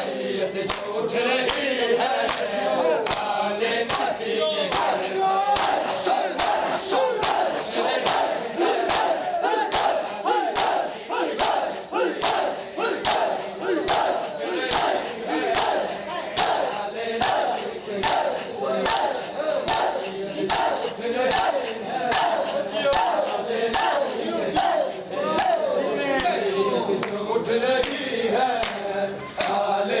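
Men beat their bare chests in a steady rhythm.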